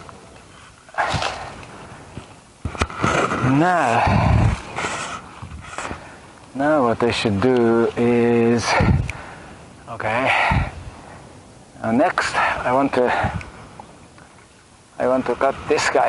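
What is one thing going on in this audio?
A man talks calmly close by, in short bursts.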